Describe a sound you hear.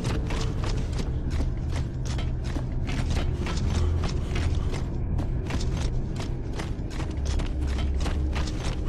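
Heavy armoured boots thud in quick footsteps.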